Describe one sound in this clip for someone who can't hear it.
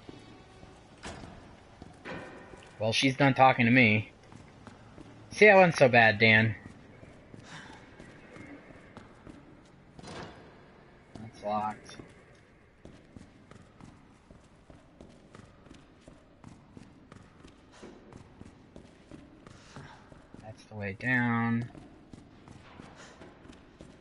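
Footsteps tap on a hard concrete floor.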